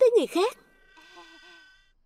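A young boy laughs.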